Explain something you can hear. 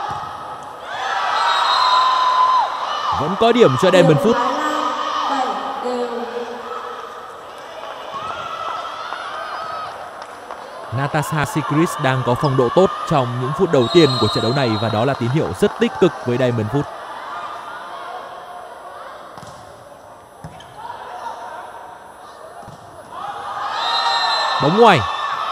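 A crowd cheers and shouts in a large echoing arena.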